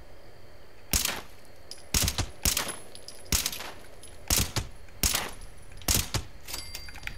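A rifle fires single sharp shots.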